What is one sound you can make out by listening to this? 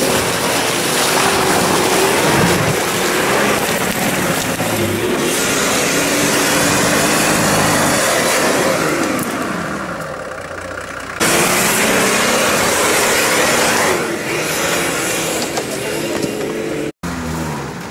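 An engine revs hard and labours as an off-road vehicle climbs through mud.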